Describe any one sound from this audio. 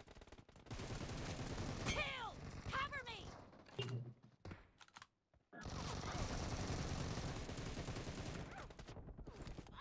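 Gunshots crack from a shooting game.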